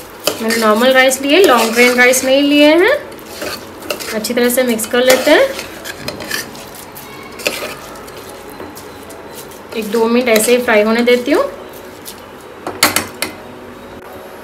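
A spoon scrapes and stirs rice in a metal pot.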